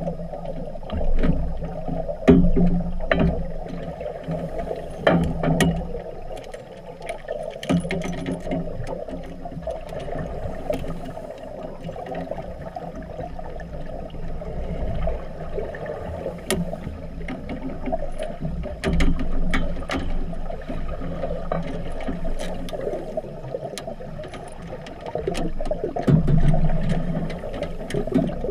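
Bubbles from a scuba diver's breath gurgle and rumble in bursts underwater.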